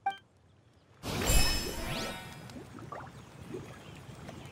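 A bright game chime rings out and fades.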